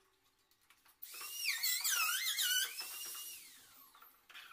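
A cordless drill whirs, its pitch rising and falling as it drives screws.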